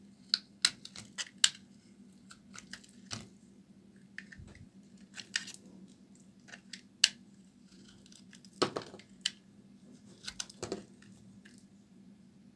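A blade shaves and scrapes at a bar of soap with crisp crackles.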